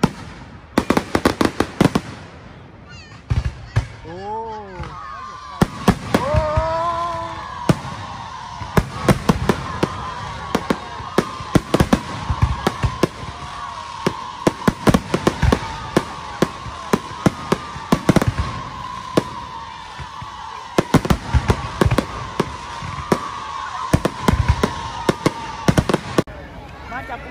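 Fireworks bang and boom in rapid bursts.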